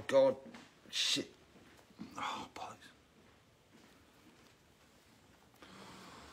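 A face mask rustles as a man adjusts it.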